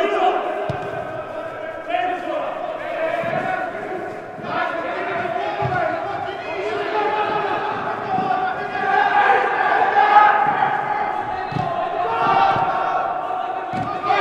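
A football is kicked with dull thuds in a large echoing hall.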